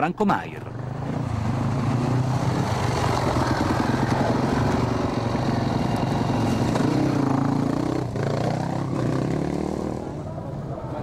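A motorcycle engine revs loudly close by.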